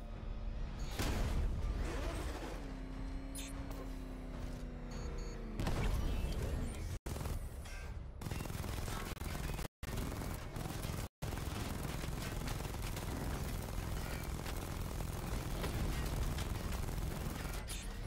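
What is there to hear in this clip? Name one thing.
Heavy gunfire rattles and explosions boom.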